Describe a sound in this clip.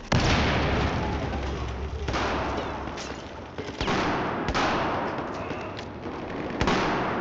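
Rifle shots crack loudly and echo, several times.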